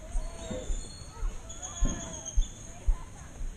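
Children's voices chatter and call out nearby outdoors.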